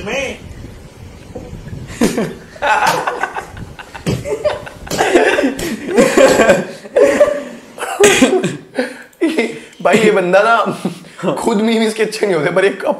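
Young men laugh together close by.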